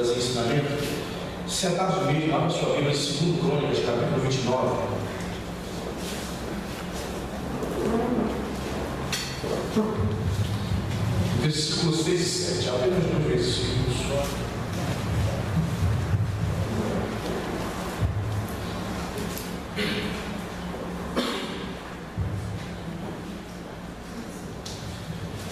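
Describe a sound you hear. A man speaks with emotion into a microphone, heard through loudspeakers in an echoing hall.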